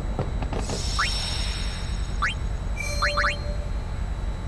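Short electronic menu beeps chime several times.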